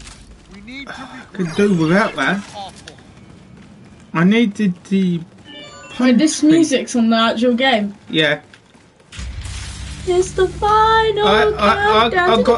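A young man talks casually close to a microphone.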